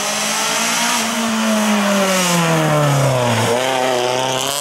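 A car speeds past close by, its engine note dropping as it goes.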